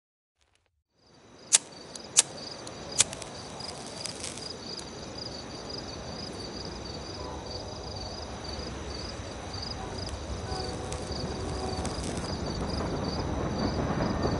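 Wind blows steadily outdoors, slowly growing louder.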